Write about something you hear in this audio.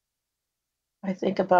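An older woman speaks calmly close by.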